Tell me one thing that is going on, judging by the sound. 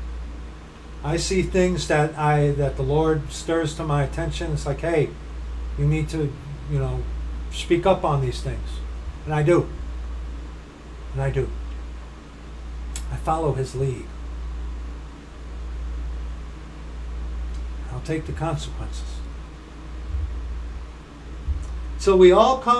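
A middle-aged man speaks calmly and close to a microphone, with pauses.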